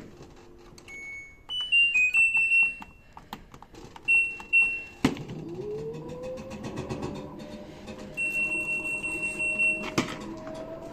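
A washing machine beeps in short high tones as its buttons are pressed.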